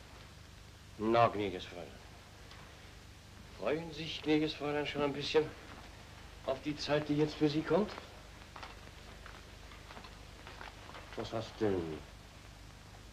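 A man speaks calmly and close by, with a deep voice.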